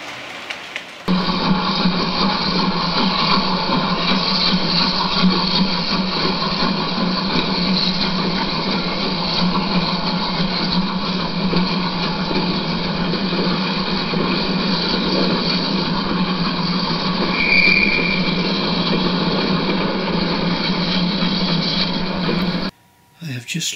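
A small electric motor hums steadily.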